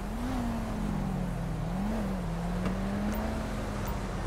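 A car boot clicks open.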